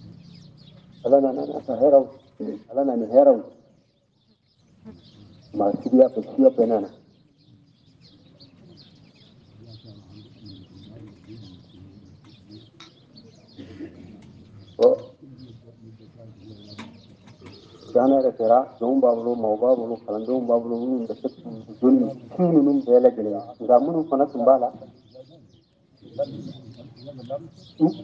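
An elderly man chants in a wavering, melodic voice, with pauses.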